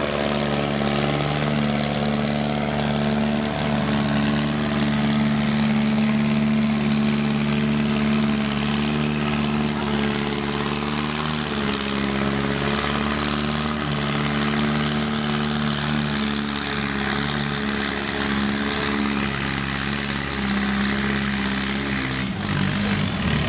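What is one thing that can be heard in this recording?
A tractor engine roars loudly and steadily as it pulls a heavy load.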